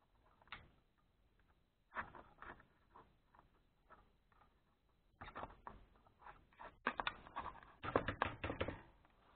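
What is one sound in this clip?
Small metal beads rattle and click close by.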